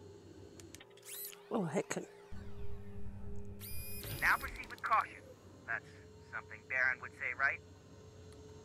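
Electronic beeps and chirps sound from a computer terminal.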